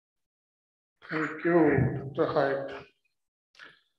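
A man speaks briefly through an online call.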